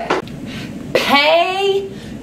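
A woman exclaims loudly with excitement.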